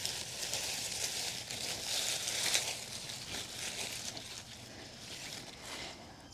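Leaves rustle.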